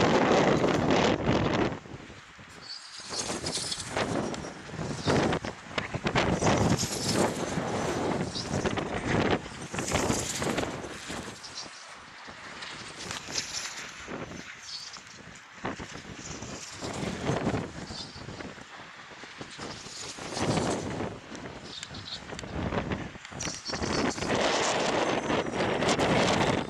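Wind gusts and buffets a microphone outdoors.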